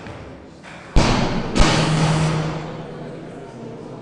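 Spectators applaud in a hall.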